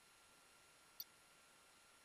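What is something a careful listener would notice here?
A short electronic click sounds once.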